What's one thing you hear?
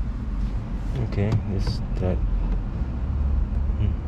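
A gear lever clicks as it is moved.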